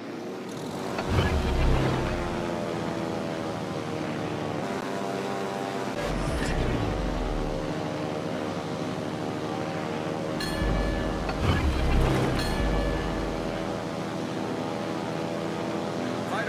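Propeller aircraft engines drone steadily overhead.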